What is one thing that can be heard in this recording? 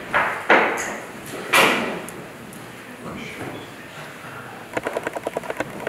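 A man speaks quietly and calmly in an echoing hall.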